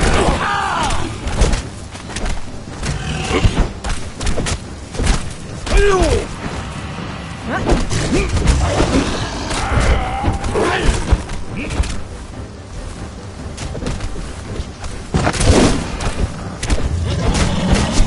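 Weapons strike and thud against a beast's hide.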